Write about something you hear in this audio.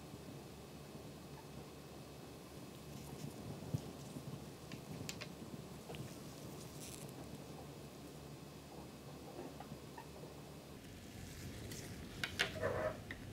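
Small plastic pieces tap and click softly against a table.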